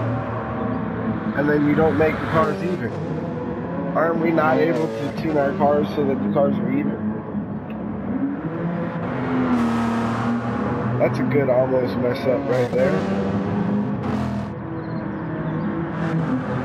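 A diesel prototype race car roars past at speed.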